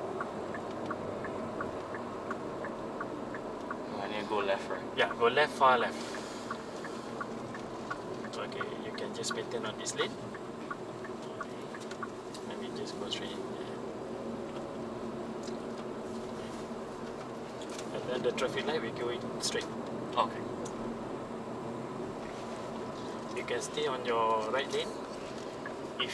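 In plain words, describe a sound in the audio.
A car engine hums steadily with road noise.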